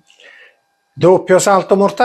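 An older man speaks calmly into a microphone, close by.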